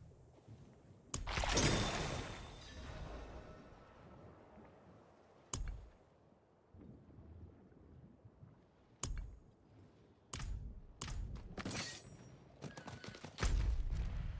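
Game menu sounds chime and click.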